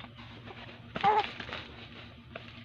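A baby makes a short babbling sound.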